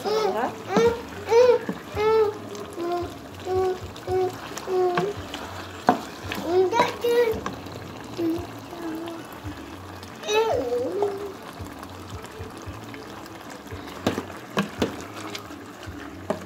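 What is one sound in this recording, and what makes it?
A wooden spoon stirs and scrapes inside a metal pot.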